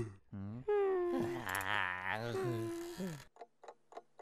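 A boy yawns loudly.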